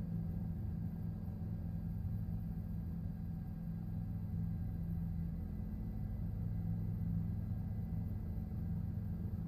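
A helicopter engine and rotor drone steadily from inside the cabin.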